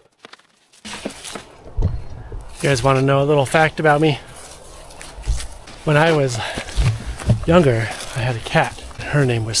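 A man talks close up, with animation.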